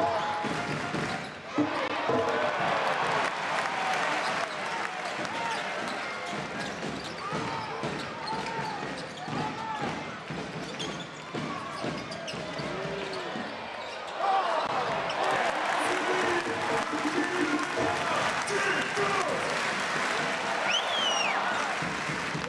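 A large indoor crowd murmurs and cheers, echoing in a big hall.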